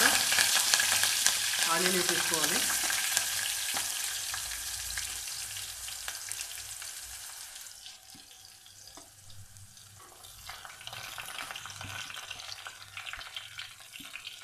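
Chopped onions are scraped off a metal plate into a pot.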